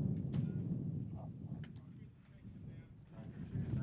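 An arrow thuds into a target.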